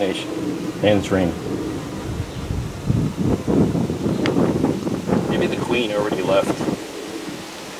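A wooden frame scrapes and knocks against a wooden box.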